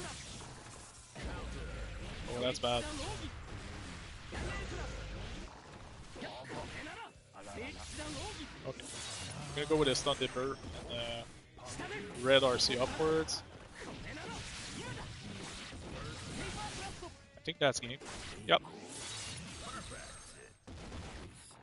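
Fighting game blows and slashes crack and clash rapidly.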